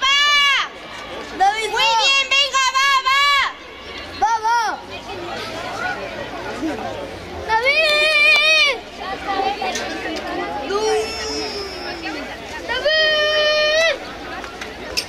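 Young girls nearby shout loudly in bursts, cheering.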